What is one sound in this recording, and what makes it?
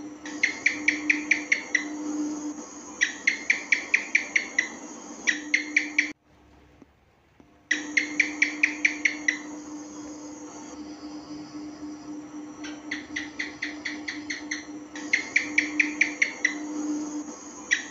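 A gecko calls with quick, repeated sharp chirps in bursts.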